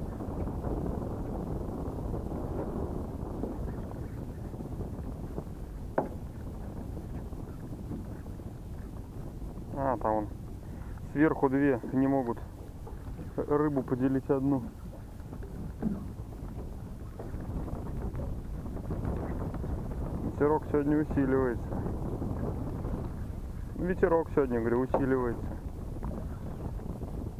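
Small waves lap and splash nearby.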